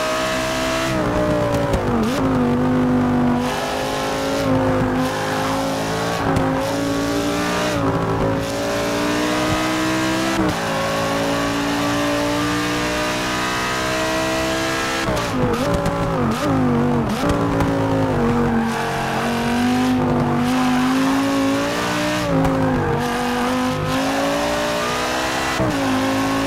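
A racing car engine roars, its pitch rising and falling as it shifts gears.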